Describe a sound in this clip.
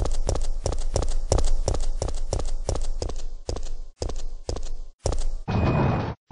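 Footsteps thud at a steady pace on a hard floor.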